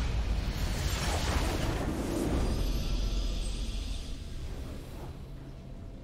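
A game's victory fanfare swells with a bright whooshing burst, then fades.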